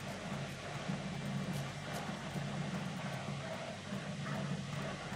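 A horse trots with hooves clopping on a stone street.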